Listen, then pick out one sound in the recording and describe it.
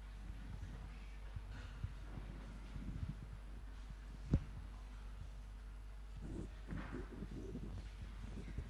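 A man speaks softly and briefly, heard through a microphone in a large echoing hall.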